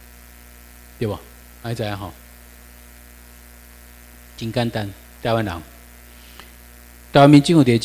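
A man speaks into a microphone in bursts, heard through a loudspeaker in a room.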